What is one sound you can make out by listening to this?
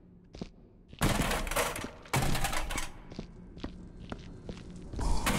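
A metal wheelchair crashes and clatters against a hard floor.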